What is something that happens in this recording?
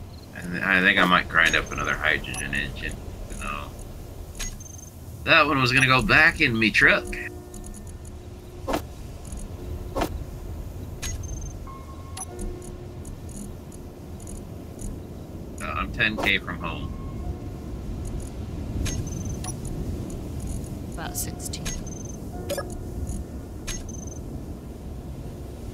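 Short interface clicks sound now and then as items are moved between lists.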